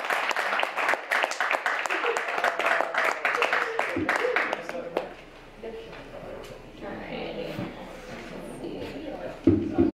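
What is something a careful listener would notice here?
A young woman speaks cheerfully into a microphone.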